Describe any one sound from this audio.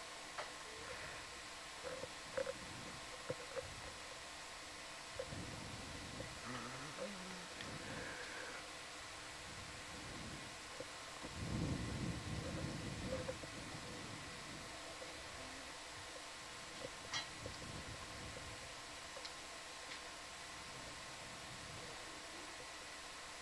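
Water bubbles and gurgles underwater.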